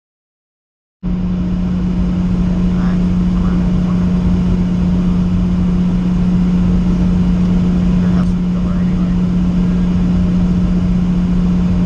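A truck engine brakes with a steady droning hum.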